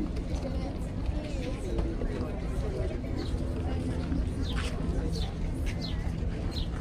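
Men and women talk in a murmur nearby outdoors.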